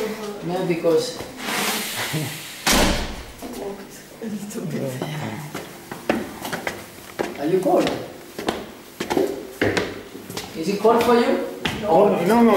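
Footsteps climb a tiled staircase.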